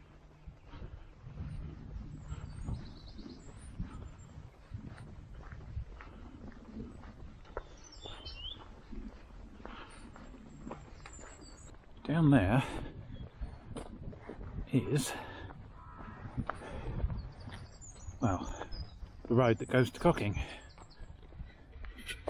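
Footsteps crunch steadily on a dirt and gravel path.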